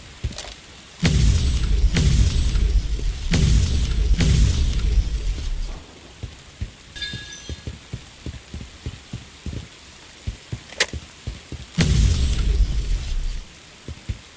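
Strong gusts of wind roar and die away.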